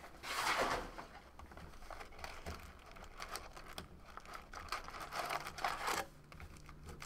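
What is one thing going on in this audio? Cardboard packs rustle and slide as a box is handled.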